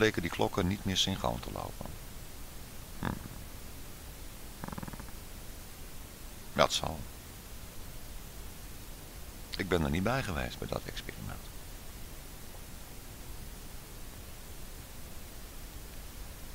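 City traffic hums steadily in the distance, outdoors.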